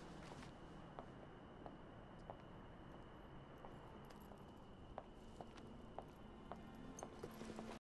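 Footsteps tap on a hard floor at a slow, even pace.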